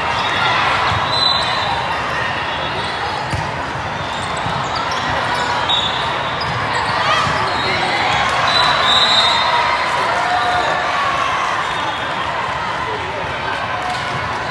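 A crowd of spectators chatters and calls out throughout a large echoing hall.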